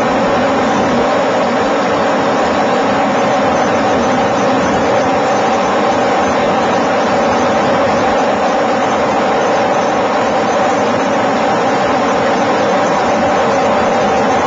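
Rough sea waves crash and churn loudly.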